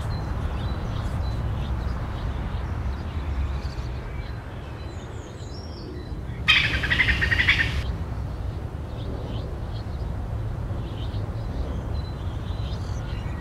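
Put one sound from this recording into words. A squirrel gnaws quietly on food.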